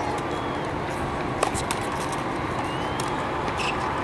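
A tennis racket strikes a ball with a sharp pop some distance away.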